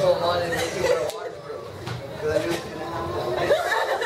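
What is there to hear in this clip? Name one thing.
A teenage girl laughs and talks with emotion up close.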